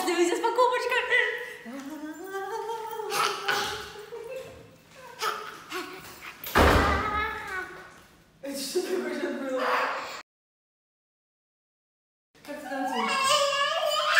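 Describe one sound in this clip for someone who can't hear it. A small child shouts and squeals excitedly.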